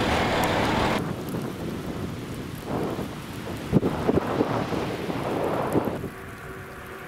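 Oars dip and splash in water with a steady rhythm.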